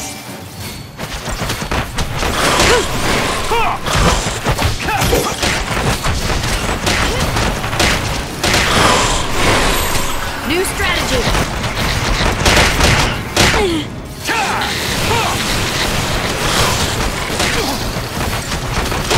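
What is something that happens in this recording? Swords clash and strike in a fast battle.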